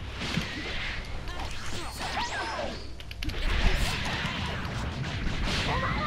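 Fighters whoosh through the air with rushing, swooshing bursts.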